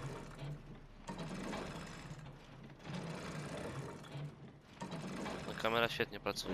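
A metal roller shutter rattles and clanks as it rolls up.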